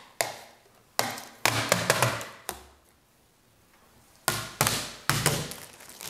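Plastic film crinkles and rustles as it is peeled off.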